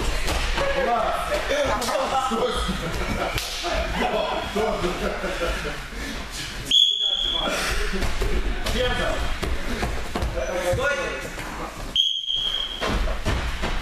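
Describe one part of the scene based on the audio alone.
Bare feet thud softly on mats as young people run.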